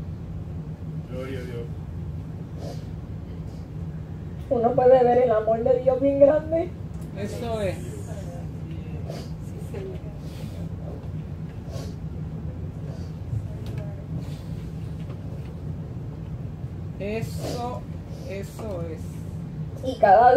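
A woman sobs and sniffles.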